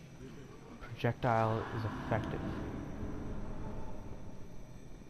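A soft magical whoosh swells and fades.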